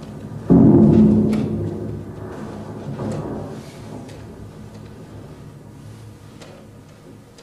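A loudspeaker plays a deep, resonant tone that starts suddenly and slowly fades away.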